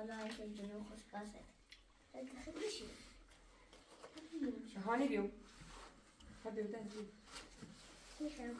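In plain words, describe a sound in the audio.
A young child talks in a high voice nearby.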